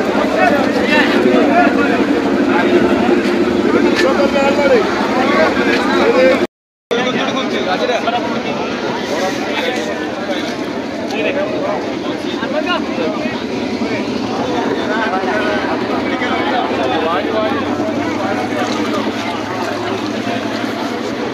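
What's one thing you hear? A crowd of men chatters loudly all around outdoors.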